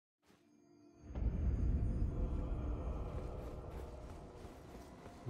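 A magical whoosh swells up and slowly fades.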